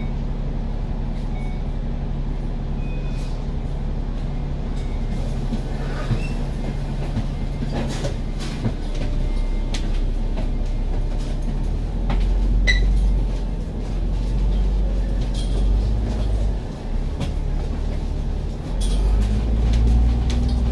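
Traffic hums along a busy street.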